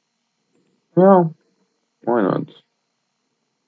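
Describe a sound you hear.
A young man speaks briefly into a nearby microphone.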